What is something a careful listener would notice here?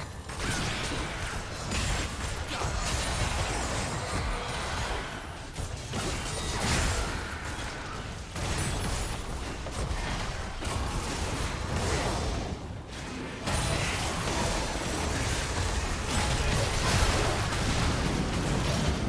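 Game spell effects and weapon hits clash and burst rapidly.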